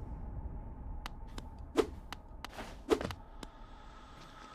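Sharp video game sound effects strike and whoosh.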